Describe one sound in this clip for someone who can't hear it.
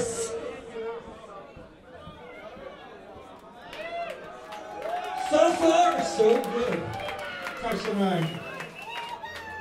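A man talks into a microphone on a stage, heard through loudspeakers.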